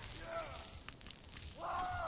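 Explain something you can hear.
Electricity crackles and buzzes.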